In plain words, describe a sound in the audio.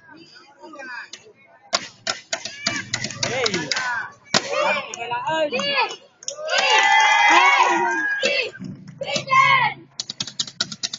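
Young girls shout cheers together loudly outdoors.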